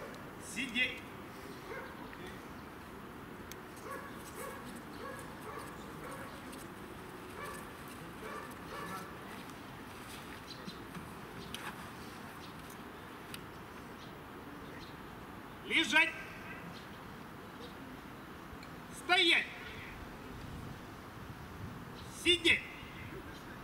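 A woman calls out in short bursts close by outdoors.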